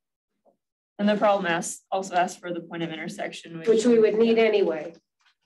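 A woman speaks calmly, as if lecturing.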